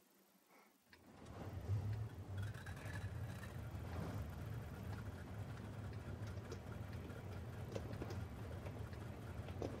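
A tank engine rumbles deeply and steadily.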